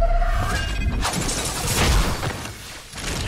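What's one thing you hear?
Ice shatters and crackles in a loud burst.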